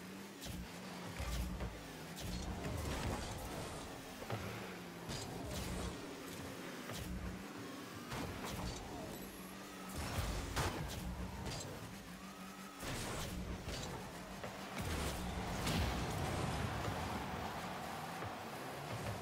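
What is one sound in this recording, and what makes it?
A video game car engine revs and boosts.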